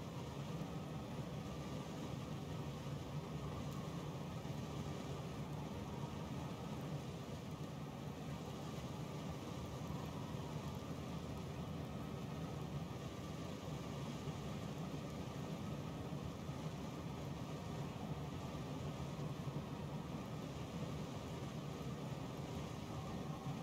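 A fire crackles softly in a furnace.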